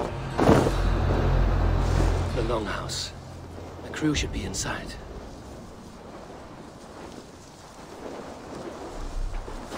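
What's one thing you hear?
Dry grass rustles as something brushes through it.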